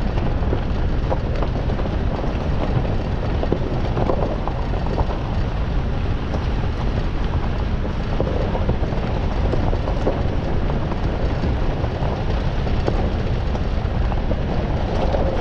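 Tyres crunch and rattle over a gravel track.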